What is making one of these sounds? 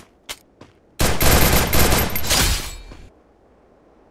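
Gunfire bursts loudly in a rapid volley.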